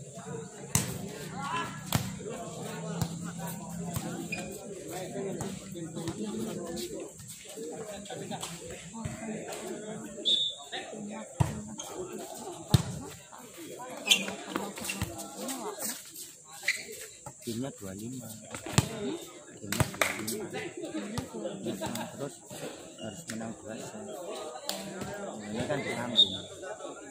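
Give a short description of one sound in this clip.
A crowd of young men and women chatter and call out outdoors.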